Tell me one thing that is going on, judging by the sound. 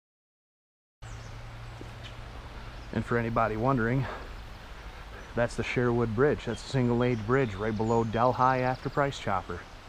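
A river flows and ripples gently.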